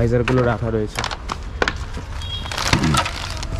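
Plastic bags crinkle as a hand handles them.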